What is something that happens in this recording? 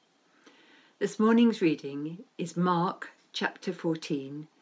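An older woman reads aloud calmly and close to a microphone.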